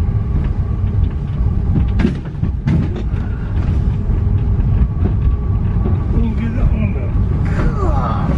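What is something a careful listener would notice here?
A train rumbles steadily along its track.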